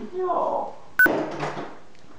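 A door clicks shut.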